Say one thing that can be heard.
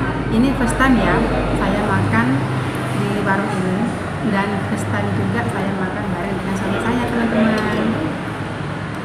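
A woman talks calmly close by.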